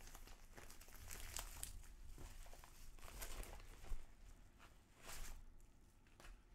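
A plastic mailer bag crinkles and rustles as hands handle it.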